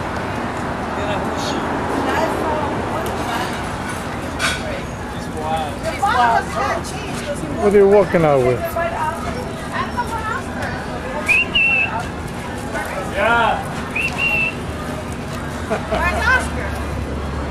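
Several men and women chat nearby outdoors.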